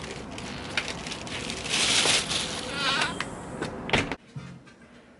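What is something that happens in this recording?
Bare feet step on a floor.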